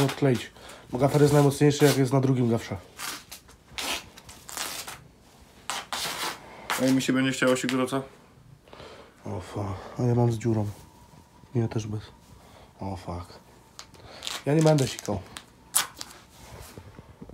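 Clothing rustles close by.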